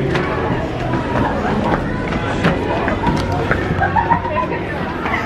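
A crowd chatters in a busy indoor space.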